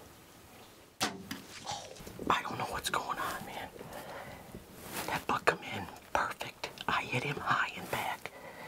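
A middle-aged man talks quietly and closely.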